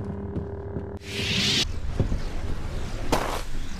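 A magical burst whooshes and crackles.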